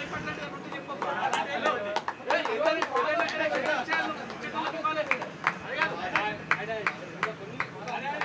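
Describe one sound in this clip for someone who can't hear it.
A group of men clap their hands.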